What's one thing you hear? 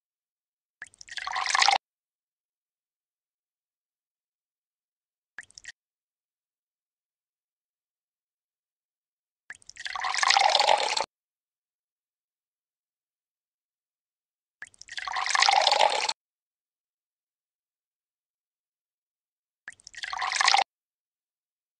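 A game sound effect of liquid pouring into a glass tube plays several times.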